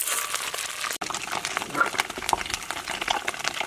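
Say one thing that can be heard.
A spatula scrapes and knocks against a dish.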